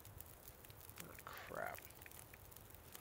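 A young man speaks briefly and quietly into a microphone.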